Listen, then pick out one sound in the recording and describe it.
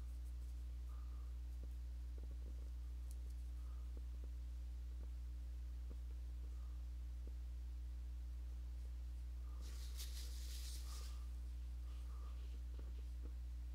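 A brush scrubs and swishes through thick paint.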